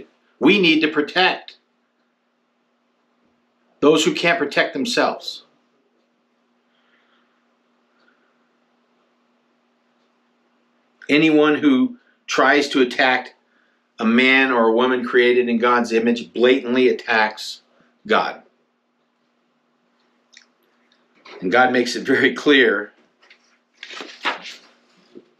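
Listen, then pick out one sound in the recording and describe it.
A man speaks calmly and earnestly, close to a microphone, with long pauses.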